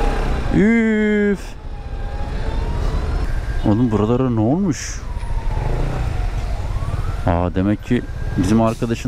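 A motorcycle engine hums at low speed.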